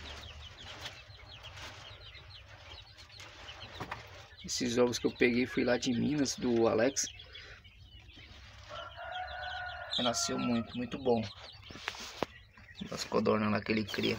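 Many chicks cheep and peep constantly, close by.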